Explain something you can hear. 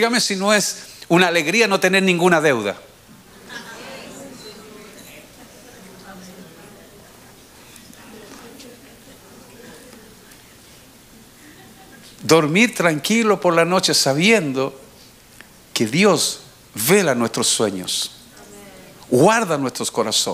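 A middle-aged man preaches with animation into a microphone in a large echoing hall.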